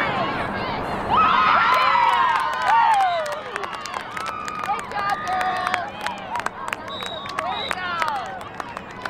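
Young women cheer and shout excitedly outdoors.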